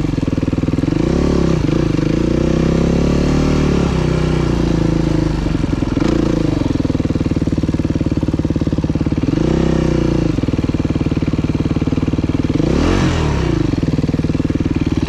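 A dirt bike engine revs up and down as the bike climbs a dirt hill.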